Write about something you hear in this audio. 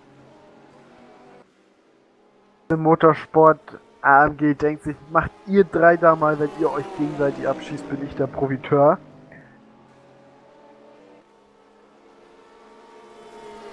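Racing car engines roar as the cars speed along the track.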